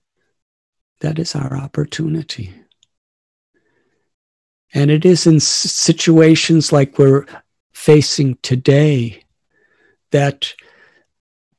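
An elderly man speaks calmly through a microphone over an online call, with pauses.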